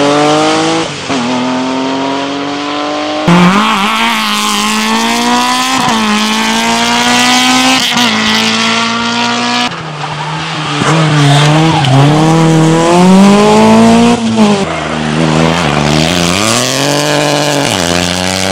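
A rally car engine roars at high revs, its pitch climbing and dropping sharply with each gear change.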